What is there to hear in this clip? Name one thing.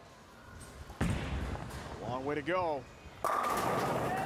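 A bowling ball rolls down a lane with a low rumble.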